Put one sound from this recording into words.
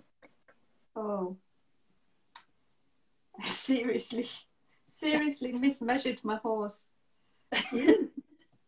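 A woman talks and laughs over an online call.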